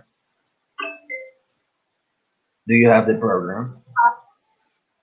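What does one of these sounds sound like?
A young man speaks calmly through an online call.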